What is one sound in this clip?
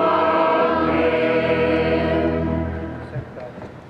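An organ plays a sustained chord that fades out.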